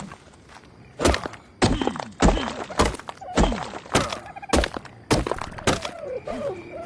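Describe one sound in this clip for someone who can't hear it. A pickaxe strikes rock with sharp, repeated knocks.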